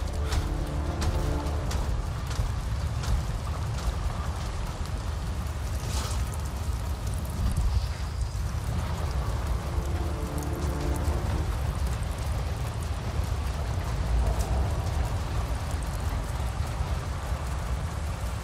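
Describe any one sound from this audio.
A low wind rumbles steadily outdoors.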